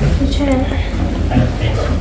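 A young woman speaks close by.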